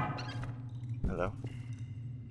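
A heavy metal cover clangs down onto concrete.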